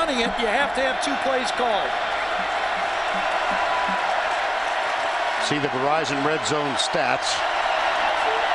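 A large stadium crowd roars steadily in the open air.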